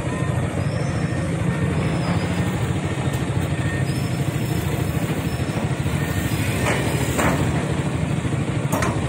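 Heavy excavator engines rumble steadily nearby.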